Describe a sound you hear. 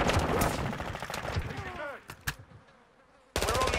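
A gun is swapped with a short metallic clack.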